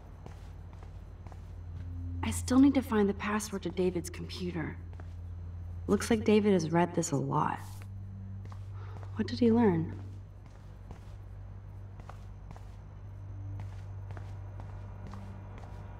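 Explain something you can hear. Footsteps fall slowly on a hard floor.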